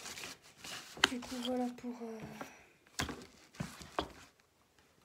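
A hard object knocks and clatters as it is handled.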